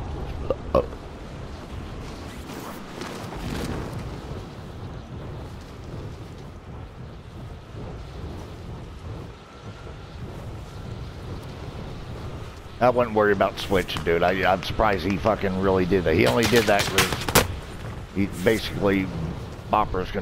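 Wind rushes past during a freefall.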